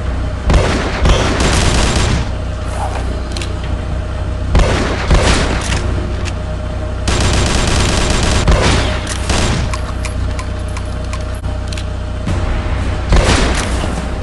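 A sniper rifle fires single shots.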